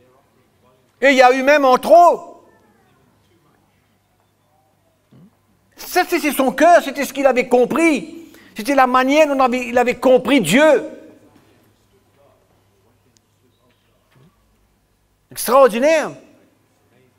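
An older man speaks with animation through a microphone, in a large echoing room.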